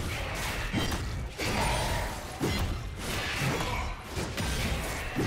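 Magic spells and weapon strikes clash and whoosh in a fast fight.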